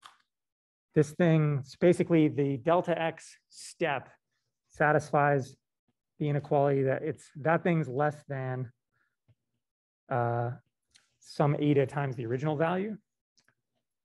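A man speaks calmly over an online call, explaining.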